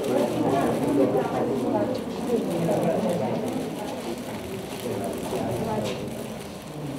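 Several men and women talk over each other nearby.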